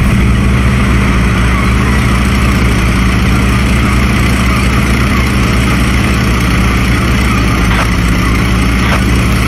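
A tank engine rumbles steadily and deeply.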